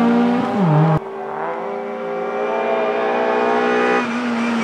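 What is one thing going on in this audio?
A racing car engine revs high as it approaches.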